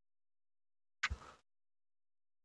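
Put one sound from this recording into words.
A short digital sound effect plays as a game card is swapped.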